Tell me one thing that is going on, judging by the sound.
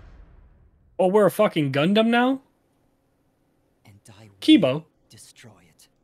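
A man speaks into a microphone, close and animated.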